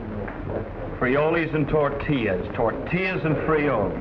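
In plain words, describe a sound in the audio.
A man speaks loudly and with animation, close by.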